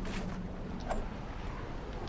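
A pickaxe strikes a wall with a sharp knock.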